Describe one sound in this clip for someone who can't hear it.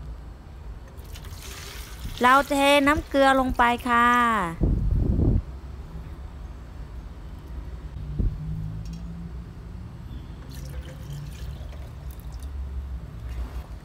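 Water pours into a glass jar.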